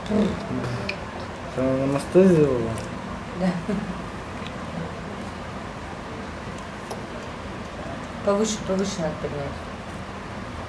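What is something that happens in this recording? A young woman speaks softly nearby in short bursts.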